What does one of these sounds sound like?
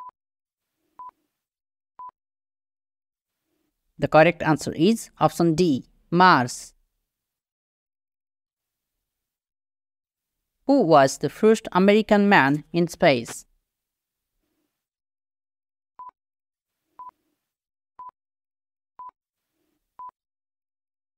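A short electronic beep sounds once a second, counting down.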